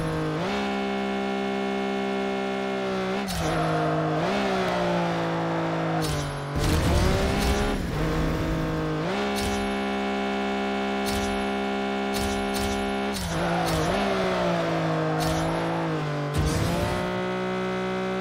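A car engine roars steadily at high revs, dipping and rising in pitch.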